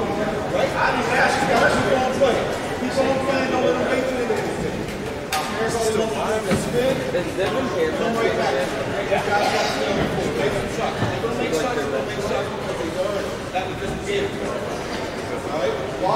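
Two men talk calmly to each other at a distance.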